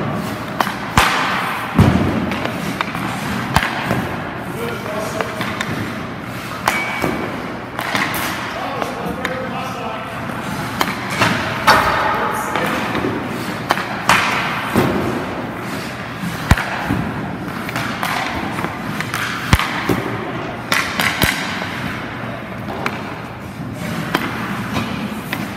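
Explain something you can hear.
Hockey pucks are shot off a stick on ice, with sharp cracks echoing in a rink.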